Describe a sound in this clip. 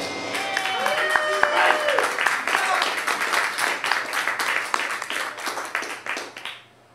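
Electric guitars play loudly.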